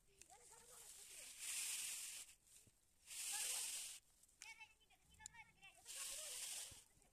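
Plastic tubing scrapes and rustles as it is pulled in.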